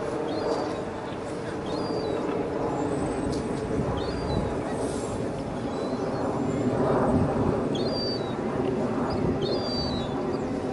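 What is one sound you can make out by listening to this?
Seagulls call now and then.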